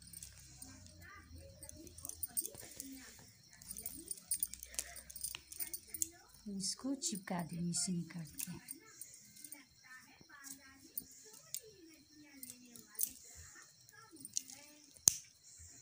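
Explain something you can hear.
Yarn rustles softly as hands pull and knot it.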